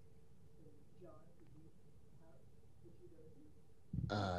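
A woman speaks into a microphone, faint and distant.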